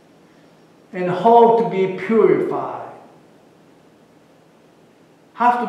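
A middle-aged man speaks with feeling through a microphone in a large echoing hall.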